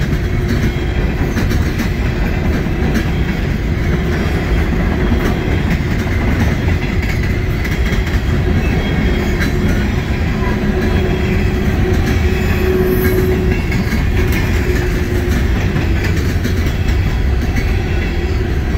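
Train wheels clank and squeal on the rails.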